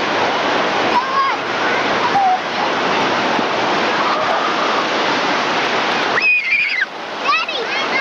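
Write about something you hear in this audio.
Children shout and squeal playfully nearby.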